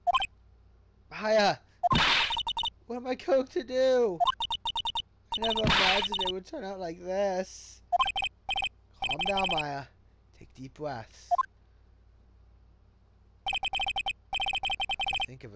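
Rapid electronic blips tick in quick bursts.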